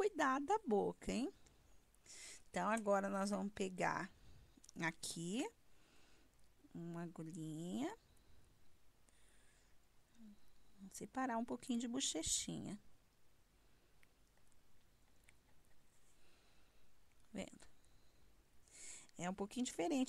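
A woman speaks calmly, close to a clip-on microphone.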